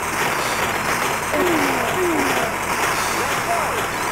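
Explosions from a video game boom loudly.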